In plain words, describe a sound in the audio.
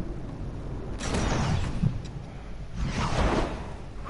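A ball lands with a rushing thump.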